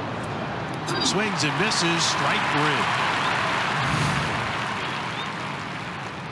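A stadium crowd cheers loudly and then fades.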